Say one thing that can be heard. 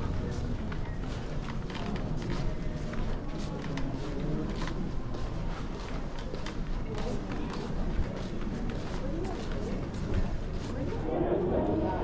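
Suitcase wheels roll across a hard floor.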